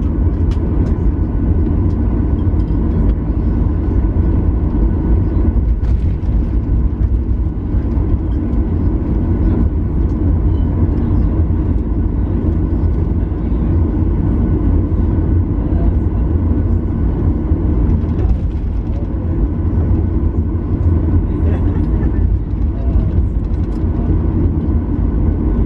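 An aircraft's wheels rumble and thump over the runway.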